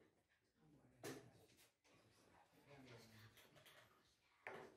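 Children talk quietly nearby.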